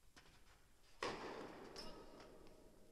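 A tennis racket strikes a ball with a sharp pop that echoes through a large hall.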